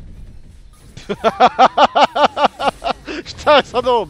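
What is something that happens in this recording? A man laughs loudly in rhythmic bursts close to a microphone.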